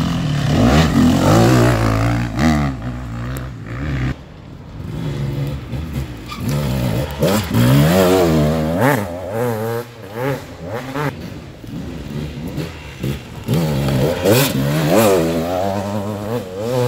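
An off-road dirt bike engine revs up and down through the gears.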